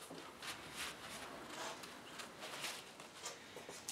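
A cloth wipes across mirror glass.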